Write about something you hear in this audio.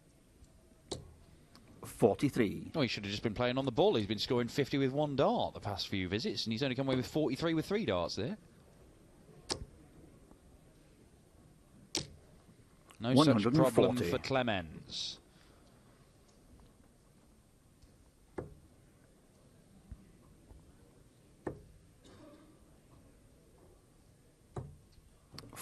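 Darts thud sharply into a dartboard one after another.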